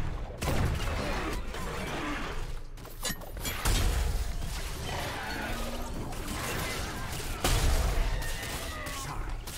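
Rapid gunfire bursts in short volleys.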